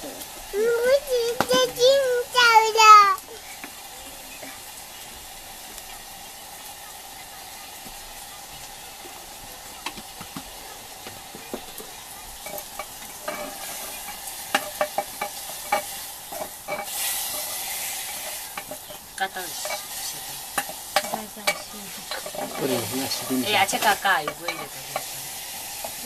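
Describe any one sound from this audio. A woman speaks nearby in a high voice.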